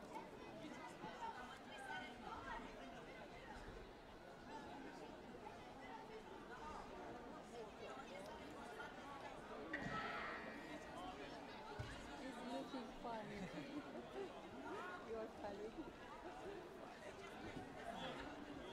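A crowd of spectators chatters throughout a large echoing hall.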